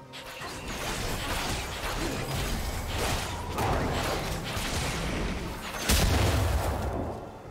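Game spell effects whoosh and crackle as characters fight.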